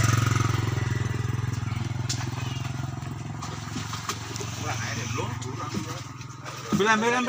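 A motorcycle engine idles with a steady low rumble nearby.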